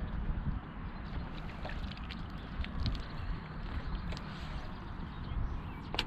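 Wind gusts steadily across open water.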